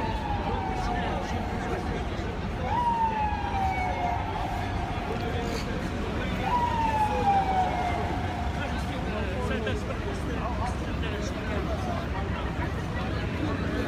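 A crowd of people talks and murmurs all around outdoors.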